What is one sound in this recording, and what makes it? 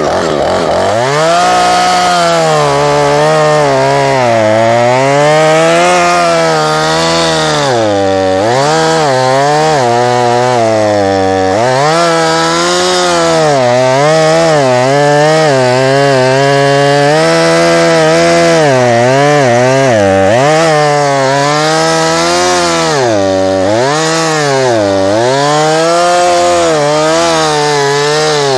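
A chainsaw engine revs up and down nearby, outdoors.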